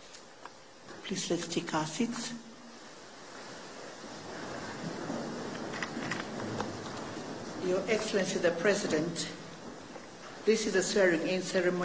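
A woman speaks formally into a microphone.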